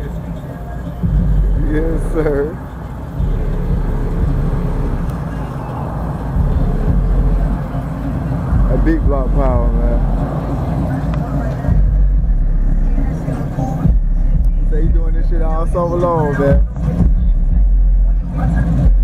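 A car engine roars and revs up and down close by.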